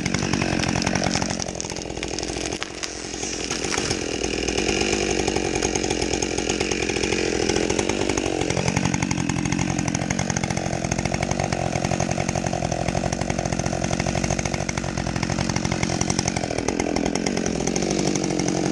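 A two-stroke chainsaw idles, its engine speed rising and falling.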